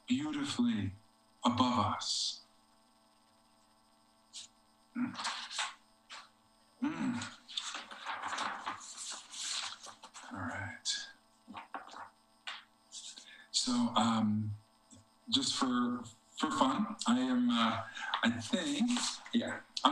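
A man speaks expressively over an online call, reading aloud.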